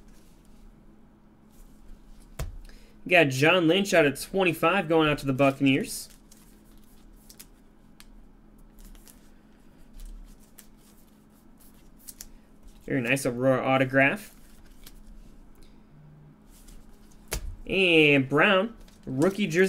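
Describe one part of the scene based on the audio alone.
Plastic card holders tap and rustle as they are handled.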